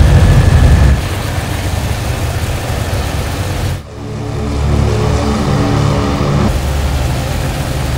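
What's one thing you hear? An aircraft engine roars as it flies past outside.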